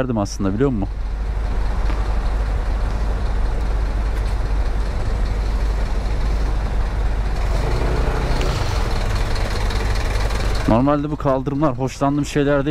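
A scooter engine hums steadily at low speed.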